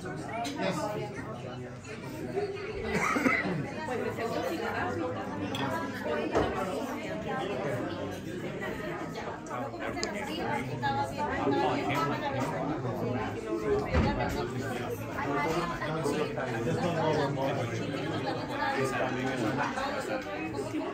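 Several men and women chat and talk over each other nearby in a room.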